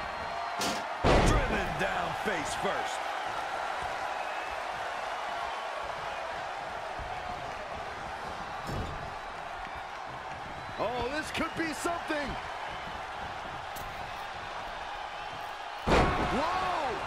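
Bodies slam hard onto a wrestling ring mat.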